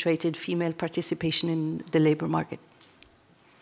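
A middle-aged woman speaks calmly through a microphone in a large hall.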